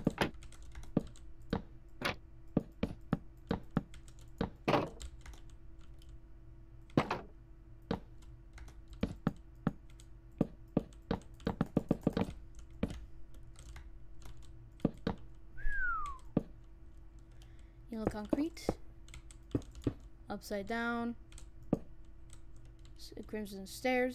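Blocks are placed and broken with quick, repeated clicks and thuds.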